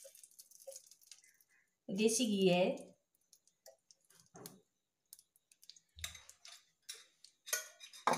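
Oil sizzles and spits in a frying pan.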